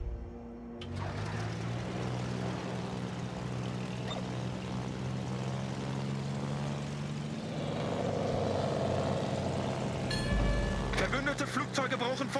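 A single propeller engine hums steadily.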